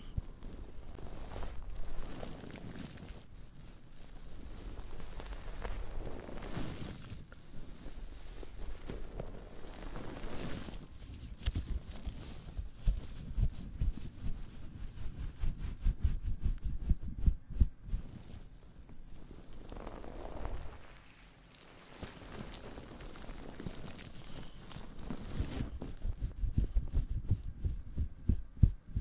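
A young woman whispers softly and close to a microphone.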